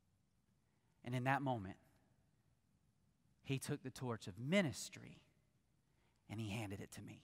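A man speaks with emphasis into a microphone, pausing between phrases.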